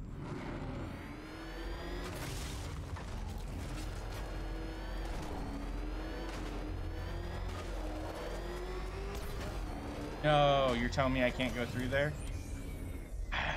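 A car engine roars and revs steadily.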